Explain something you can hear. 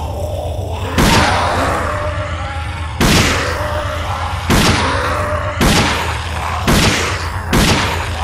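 A heavy gun fires single shots at intervals.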